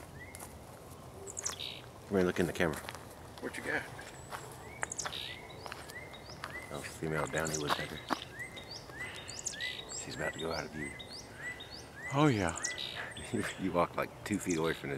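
A woodpecker gives short, repeated chirps nearby.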